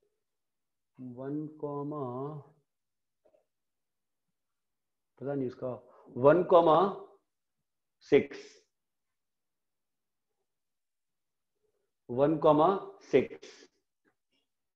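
A young man speaks calmly and close by, in short bursts.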